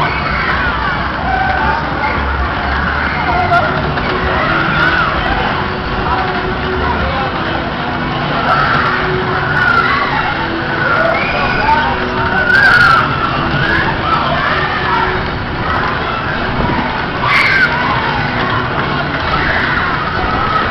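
A crowd of young people chatters and shouts over the noise.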